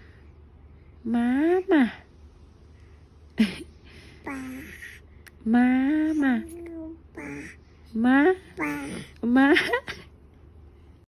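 A baby coos and squeals happily close by.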